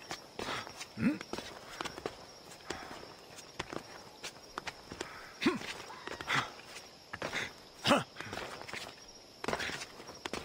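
Hands and feet scrape and thud on rock.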